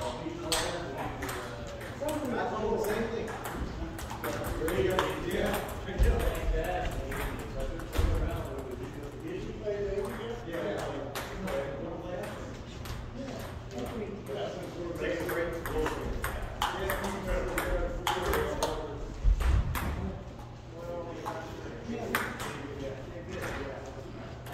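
A ping-pong ball clicks back and forth between paddles and the table in a large echoing room.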